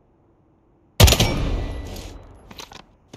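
A gunshot bangs loudly and rings out.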